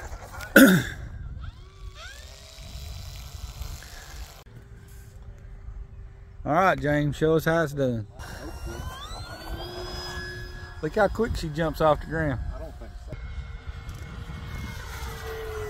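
A model jet engine whines, its pitch rising and falling.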